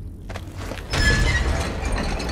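A metal valve wheel grinds as it turns.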